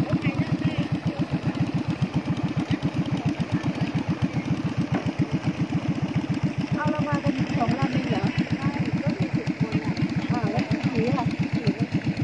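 A boat motor chugs steadily at close range.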